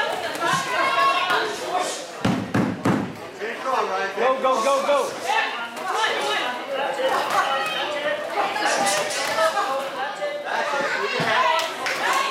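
Gloved punches thud against a boxer.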